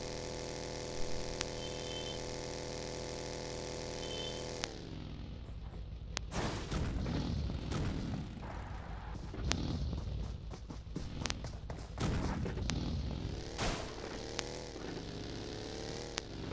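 A buggy engine roars and revs.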